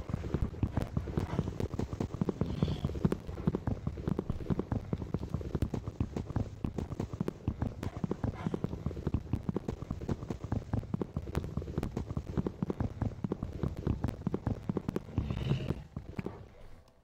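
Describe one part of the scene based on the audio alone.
Rapid tapping and crunching of blocks being mined in a game.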